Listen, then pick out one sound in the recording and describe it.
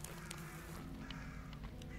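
Footsteps crunch softly on grass and gravel.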